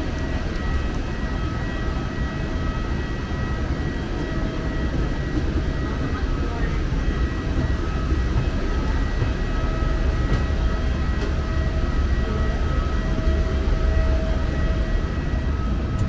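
Footsteps shuffle slowly on a hard floor.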